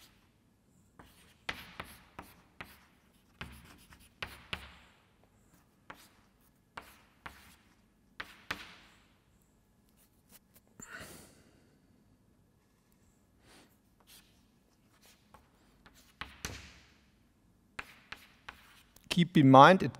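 Chalk taps and scrapes on a blackboard in short bursts.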